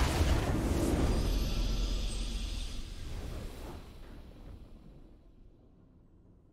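A triumphant game fanfare booms out and slowly fades away.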